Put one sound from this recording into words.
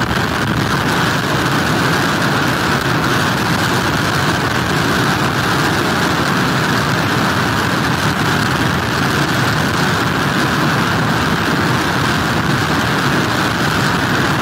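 Strong wind blusters loudly outdoors.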